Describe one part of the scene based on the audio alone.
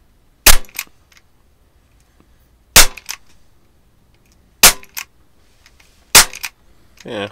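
Sharp shots crack one at a time.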